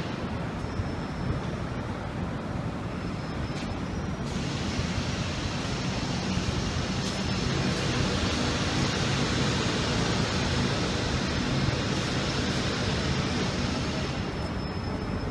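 A fire truck's engine idles nearby with a steady low rumble.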